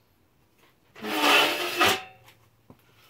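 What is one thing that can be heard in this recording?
A wooden board scrapes against a workbench.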